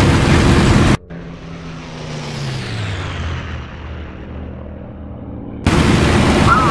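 A propeller plane drones past and fades away, its engine note dropping in pitch.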